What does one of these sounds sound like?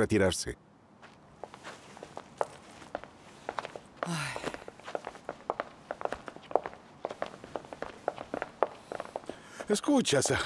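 Footsteps and rustling clatter about as people get up and move.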